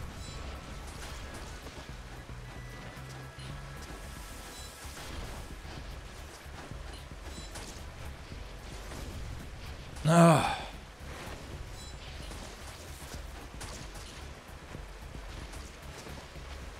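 Electronic background music plays steadily.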